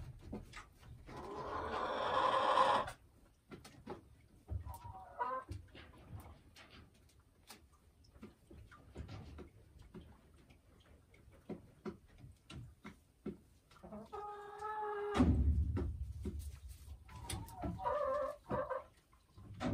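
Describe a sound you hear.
A hen clucks and squawks up close.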